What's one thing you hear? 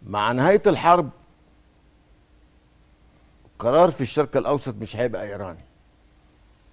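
A man speaks in short phrases through a microphone.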